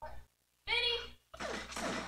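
A gun fires in a quick burst.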